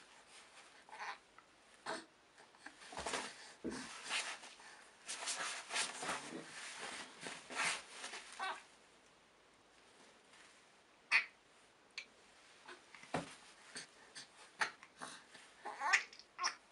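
A baby giggles and coos close by.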